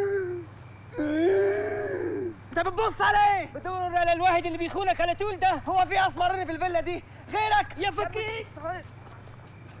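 A man shouts with animation close by.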